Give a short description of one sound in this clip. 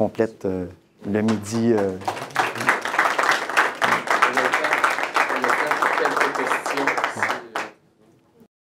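An audience applauds in a lecture hall.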